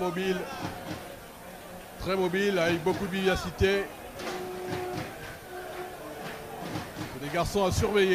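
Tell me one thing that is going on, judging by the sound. A crowd cheers in the distance.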